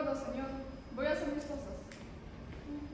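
A young woman speaks in reply on a stage.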